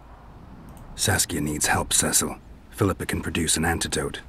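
A man speaks calmly in a low, gravelly voice.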